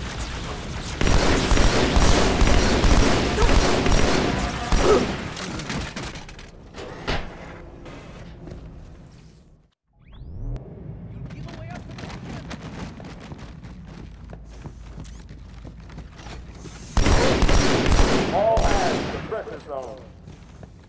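Automatic gunfire rattles loudly in rapid bursts.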